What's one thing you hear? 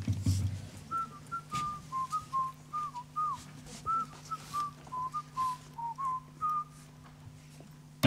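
A piano plays a short high melody.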